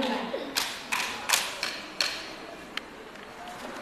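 Wooden sticks clack together in sharp knocks.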